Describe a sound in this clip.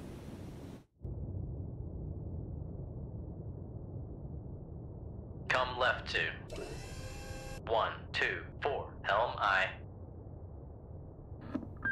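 A submarine's engine drones with a low, steady underwater rumble.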